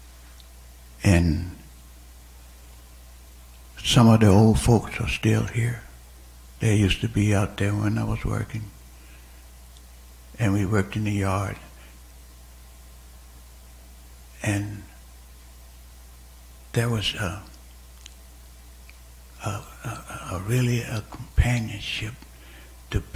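An elderly man speaks slowly into a microphone, with pauses between phrases.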